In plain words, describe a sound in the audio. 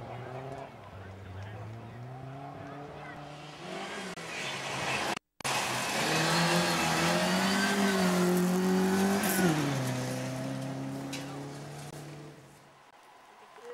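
A car engine revs loudly close by, then fades as the car drives away.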